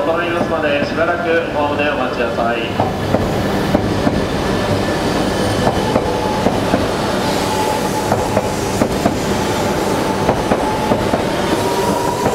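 A high-speed train whooshes as it speeds up.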